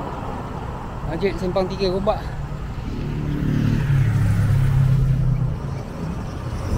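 A car drives past close by on the road.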